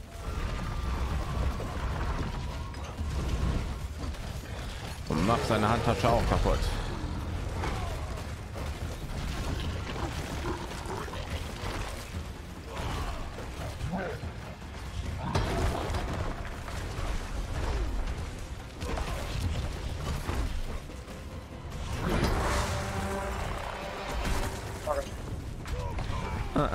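Spells and weapon strikes crash and blast over and over in a fierce battle.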